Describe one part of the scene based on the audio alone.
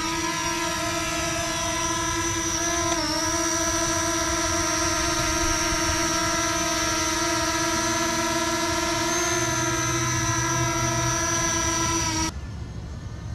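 A small drone hovers close by with a steady, high buzzing whine.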